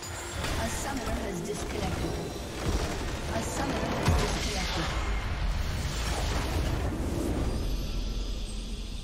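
Game spells and weapon blows clash in a busy battle.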